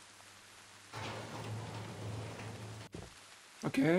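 Wooden doors slide open with a rumble.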